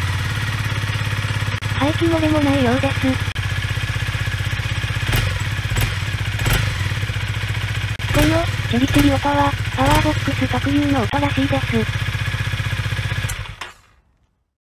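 A motorcycle engine idles with a rapid, steady throb.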